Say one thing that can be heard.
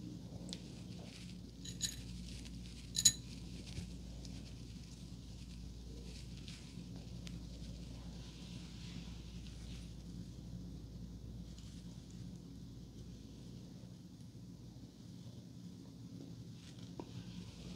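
Hands rustle softly through hair close by.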